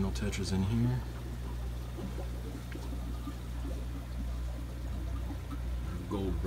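Air bubbles gurgle steadily up through a water filter.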